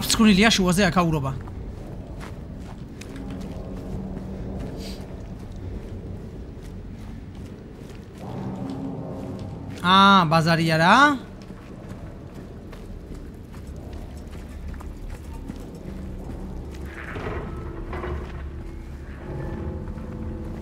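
Footsteps walk steadily on pavement and gravel.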